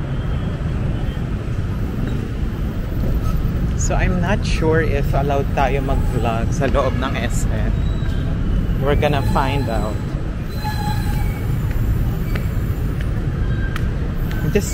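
Motorcycle engines and traffic rumble nearby outdoors.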